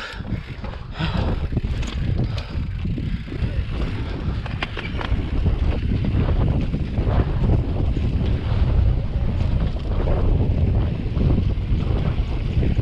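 Wind rumbles loudly across a microphone outdoors.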